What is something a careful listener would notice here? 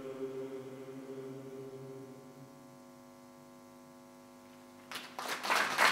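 A men's choir sings a held chord that fades away in an echoing hall.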